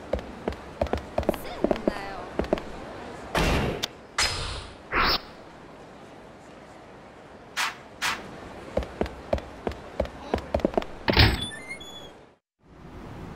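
Short electronic clicks and chimes sound as menu selections change.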